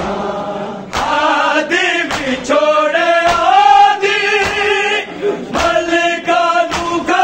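A man sings a lament loudly into a microphone.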